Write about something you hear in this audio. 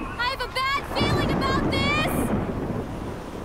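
Thunder rumbles loudly.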